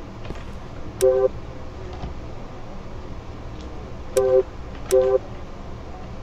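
Short electronic tones chime from a game menu.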